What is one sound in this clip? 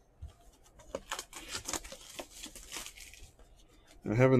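Plastic wrap crinkles on a cardboard box being handled.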